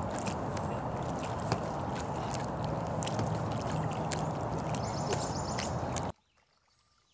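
A paddle splashes softly in water.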